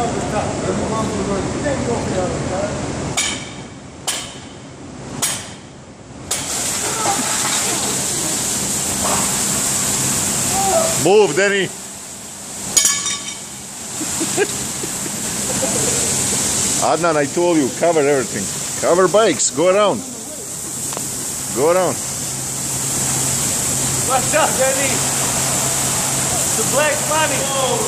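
Water sprays from a burst pipe with a steady hiss.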